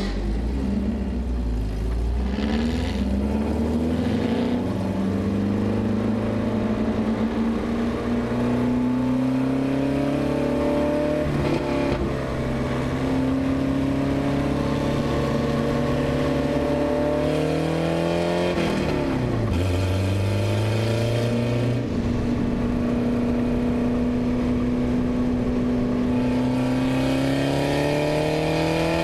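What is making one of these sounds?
Wind rushes past at speed.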